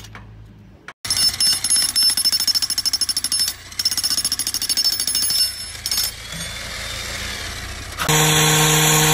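A jackhammer pounds rapidly on rock.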